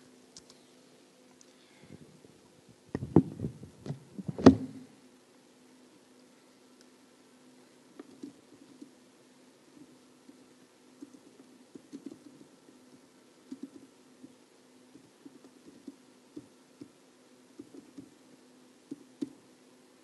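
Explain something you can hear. Keys tap on a keyboard in quick bursts.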